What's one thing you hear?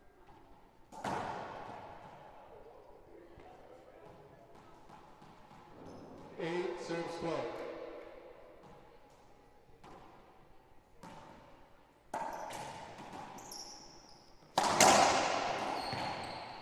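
A racquet ball smacks hard against walls in an echoing court.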